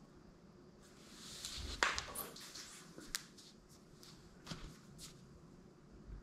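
Footsteps approach across a hard floor.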